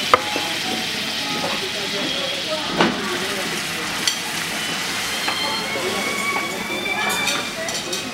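Liquid simmers and sizzles in a pan.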